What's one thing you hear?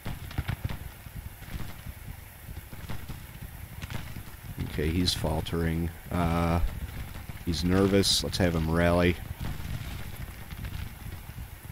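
Muskets fire in scattered, distant crackling volleys.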